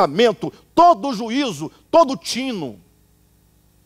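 A man speaks loudly and with passion through a microphone.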